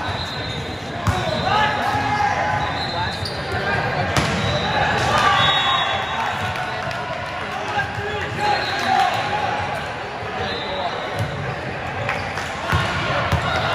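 A volleyball is hit hard with sharp slaps.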